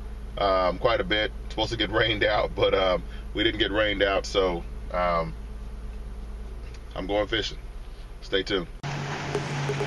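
A man talks casually and close by inside a car.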